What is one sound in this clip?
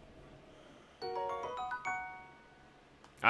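A short bright chime plays a rising run of notes.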